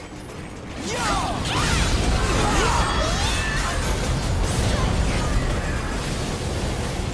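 Heavy blows and blasts crash and whoosh in a fierce fight.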